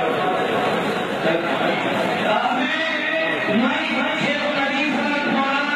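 A crowd of men talk and murmur all around.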